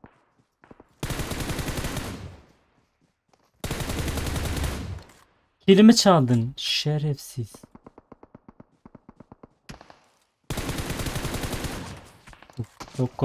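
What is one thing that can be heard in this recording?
Rapid rifle gunfire rattles in bursts.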